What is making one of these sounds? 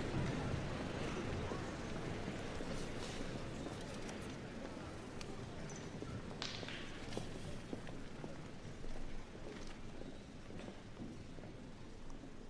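Shoes click and shuffle on a hard floor as a group walks.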